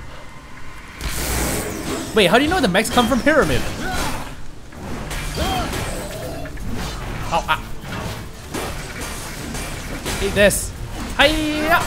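Weapons clash and explosions burst in a fight.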